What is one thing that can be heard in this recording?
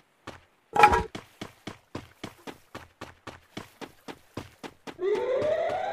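Quick footsteps thud steadily on the ground.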